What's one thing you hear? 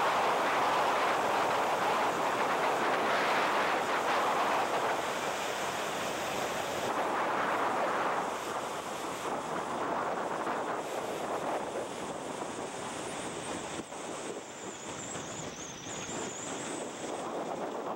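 A small propeller engine roars steadily close by.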